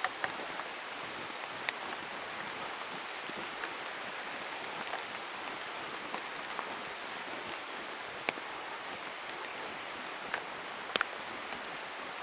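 Footsteps crunch on a dirt trail.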